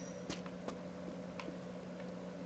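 Light footsteps patter on a hard floor.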